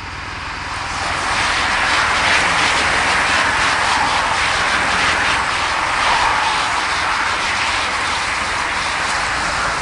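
A pack of racing bicycles whirs past on a road.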